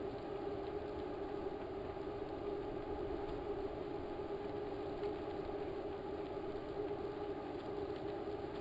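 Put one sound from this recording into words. A bicycle trainer whirs steadily as a rider pedals.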